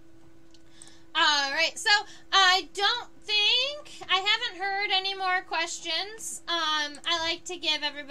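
A young woman talks animatedly and close up into a microphone.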